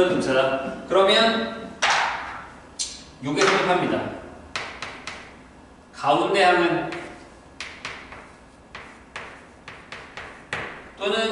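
A young man speaks calmly and clearly, as if teaching.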